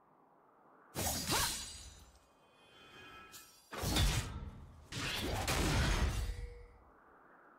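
Game sound effects of sword slashes and spell blasts burst out in quick bursts.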